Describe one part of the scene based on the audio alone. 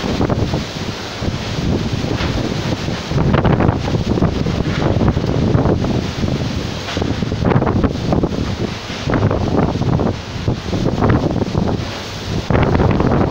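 Palm fronds and tree branches thrash and rustle in the wind.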